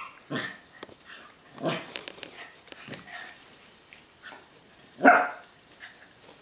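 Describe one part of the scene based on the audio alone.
Dogs growl and yelp while playing.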